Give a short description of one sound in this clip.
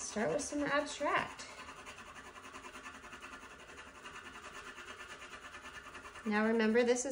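A pastel scratches softly across paper.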